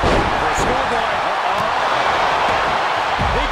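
A body slams down hard onto a wrestling mat.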